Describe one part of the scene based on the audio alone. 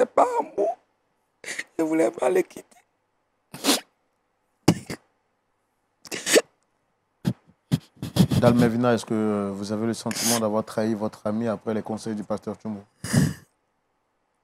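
A woman sobs and wails loudly close by.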